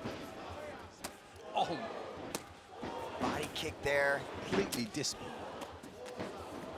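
Punches land with sharp smacks.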